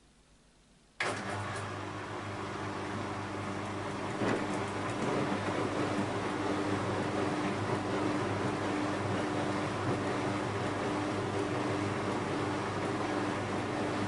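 Water sloshes inside a washing machine.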